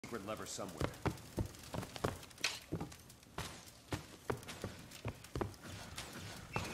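Footsteps run steadily over a hard floor.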